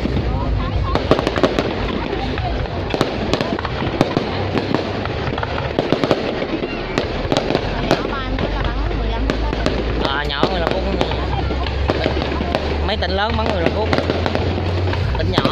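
Rockets whistle as they shoot up.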